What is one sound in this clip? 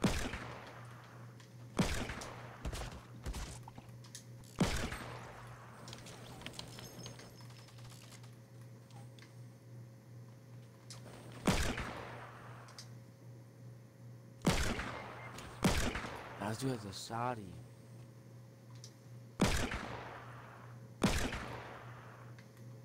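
Loud gunshots go off one at a time, each with an echoing tail.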